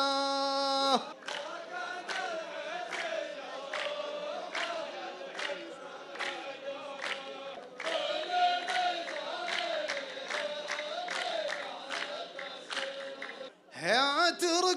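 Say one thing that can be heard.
A group of men sing together in a low chant.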